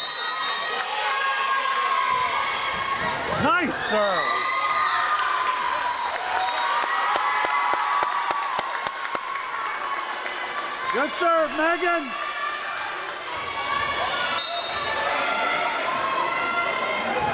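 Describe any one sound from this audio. A volleyball is struck with dull slaps.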